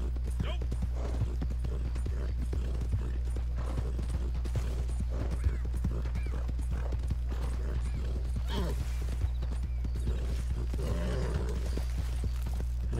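A horse's hooves thud at a steady gallop over grassy ground.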